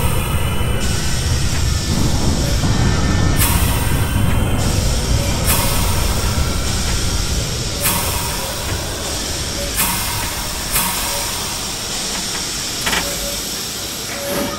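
A train rumbles along the rails and slowly quietens as it slows down.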